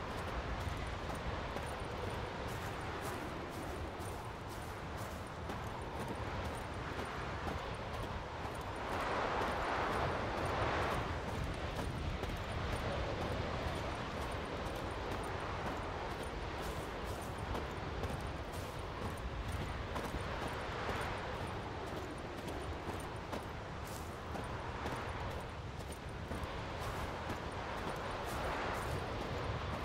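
Wind rushes through trees outdoors, rising and falling.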